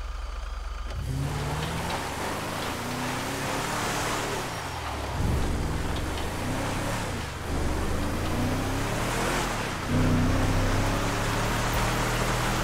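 A truck engine revs hard as the truck speeds over gravel.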